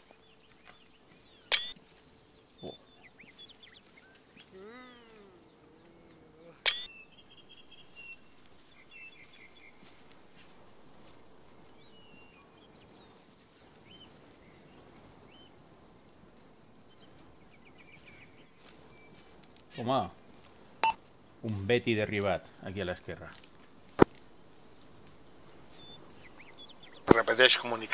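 Footsteps crunch softly through dry leaves on the ground.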